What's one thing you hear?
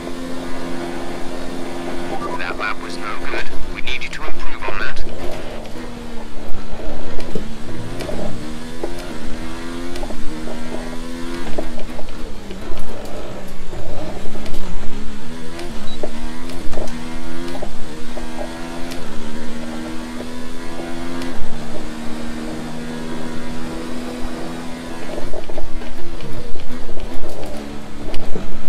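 A racing car engine roars, revving up and down as it shifts gears.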